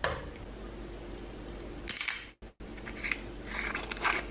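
A plastic cap is twisted off a glass bottle.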